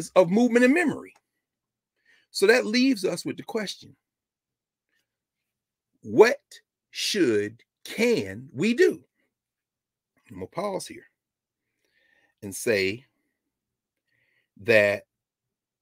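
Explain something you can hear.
A middle-aged man speaks calmly and with emphasis, close to a microphone, with short pauses.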